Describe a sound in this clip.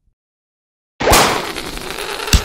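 A balloon pops sharply.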